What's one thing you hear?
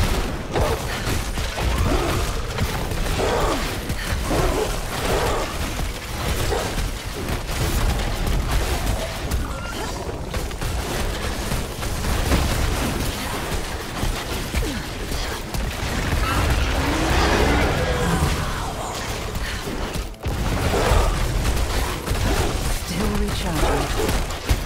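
Magic spell effects crackle and blast in quick succession.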